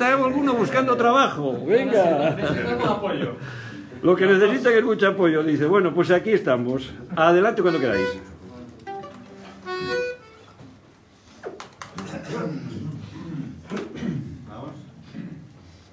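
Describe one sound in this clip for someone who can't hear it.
Mandolins and guitars strum along.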